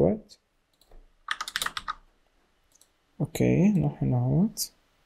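A young man speaks calmly and close into a headset microphone.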